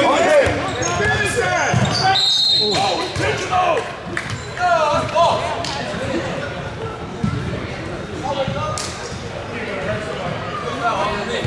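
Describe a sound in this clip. A crowd of spectators talks and calls out in a large echoing gym.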